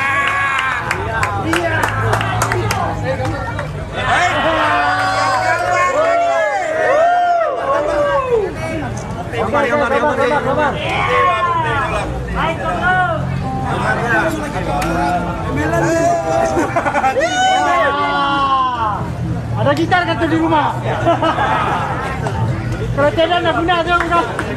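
Men sing together through a loudspeaker system, sounding loud and lively.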